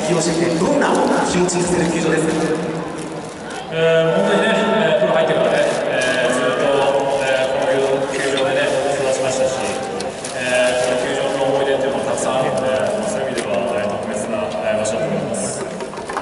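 A man speaks calmly through loudspeakers that echo across a large open stadium.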